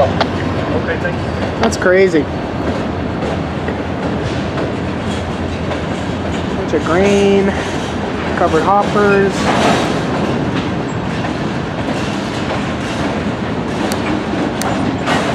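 Metal couplings clank and knock as the cars pass.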